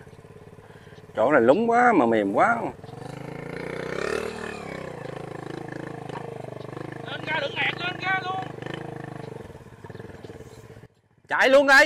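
A small motorcycle engine labours under a heavy load.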